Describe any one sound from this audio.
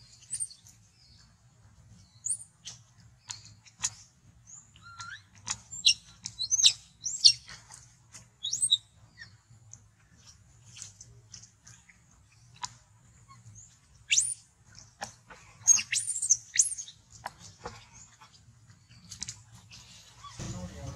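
A baby monkey squeaks in short, high cries.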